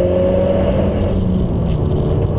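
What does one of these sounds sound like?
A car engine drops in pitch briefly at a gear change.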